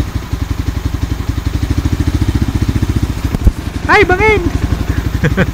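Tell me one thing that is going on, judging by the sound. A motorcycle engine thumps steadily at low revs.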